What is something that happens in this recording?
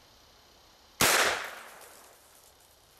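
A rifle fires a single loud shot that echoes outdoors and fades.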